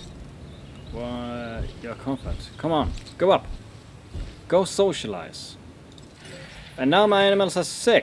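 A young man speaks casually into a close microphone.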